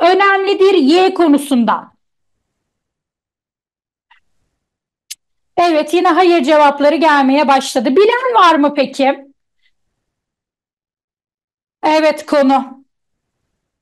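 A young woman speaks with animation through a microphone in an online call.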